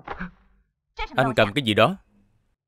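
A young man shouts in surprise.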